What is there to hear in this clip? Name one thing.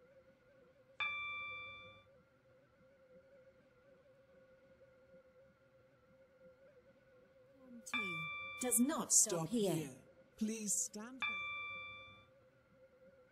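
A bright electronic chime rings out several times.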